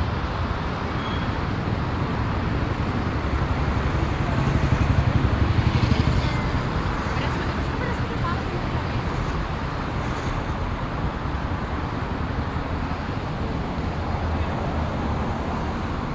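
Cars rumble along a city street outdoors.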